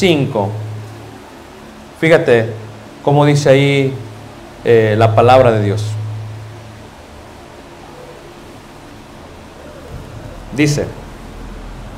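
A middle-aged man speaks slowly and with feeling into a microphone, his voice carried over a loudspeaker with a slight echo.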